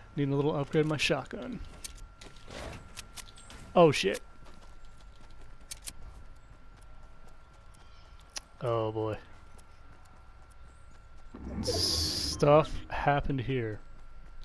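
Footsteps patter quickly over grass and wood.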